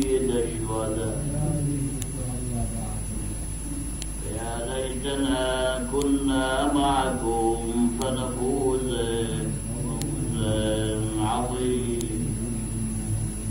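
A middle-aged man preaches with fervour into a microphone, his voice echoing in a hall.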